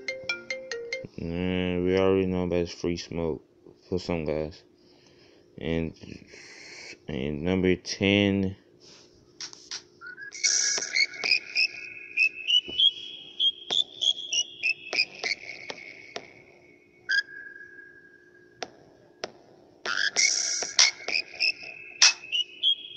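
Music plays from a phone's speaker.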